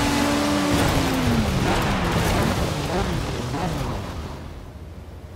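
Racing car engines wind down as the cars slow to a stop.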